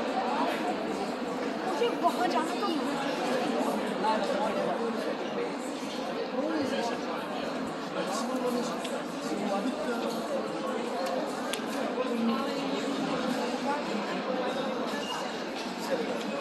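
A crowd of men and women chatters all around in a large, echoing hall.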